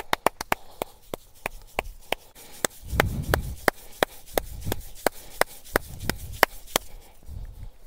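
Hands tap and slap rapidly on a person's head.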